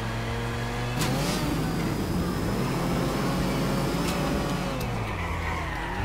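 Car tyres screech across the road as the car skids.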